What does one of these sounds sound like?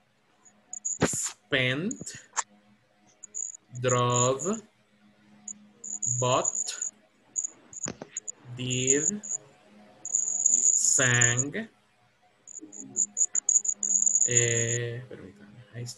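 A man reads out words slowly over an online call, pausing between them.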